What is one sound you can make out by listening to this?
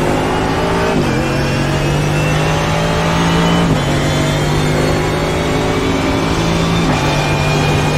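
A racing car engine drops in pitch briefly at each gear change.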